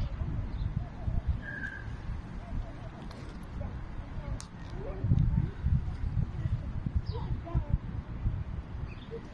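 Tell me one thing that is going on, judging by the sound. Birds chirp softly nearby.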